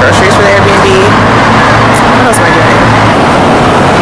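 A young woman speaks calmly close to the microphone.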